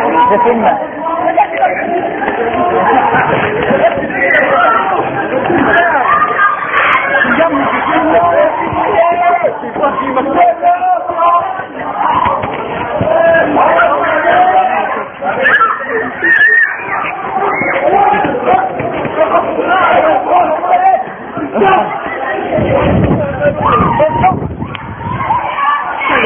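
Young men shout and talk excitedly close by.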